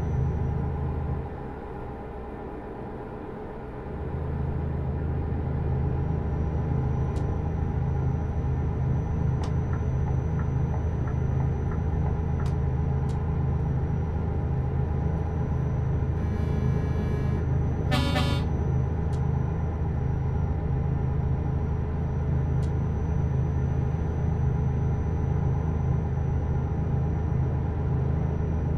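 Tyres rumble on a snowy road.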